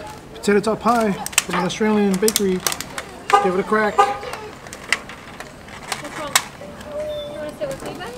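Plastic food containers rustle and crinkle.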